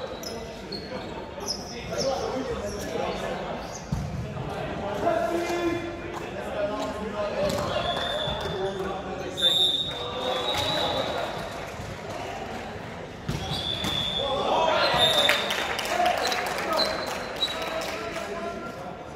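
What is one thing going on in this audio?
Young men call out and shout to each other in a large echoing gym.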